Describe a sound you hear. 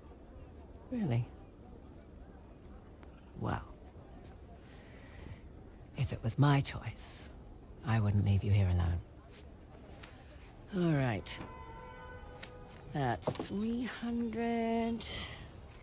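A woman speaks warmly and calmly, close by.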